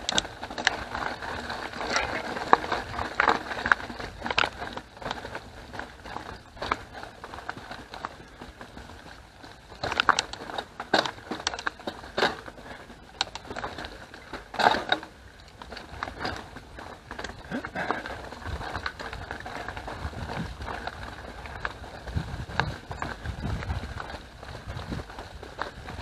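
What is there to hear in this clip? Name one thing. A bicycle frame rattles and clatters over bumps.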